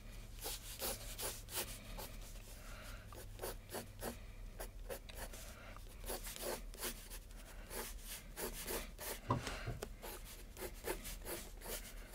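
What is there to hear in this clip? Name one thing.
A pencil scratches and scrapes across paper in quick strokes.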